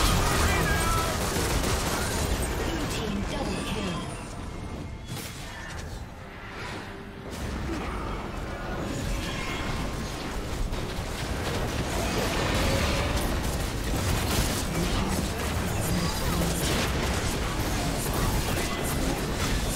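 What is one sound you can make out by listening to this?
Spell effects crackle and burst in a video game battle.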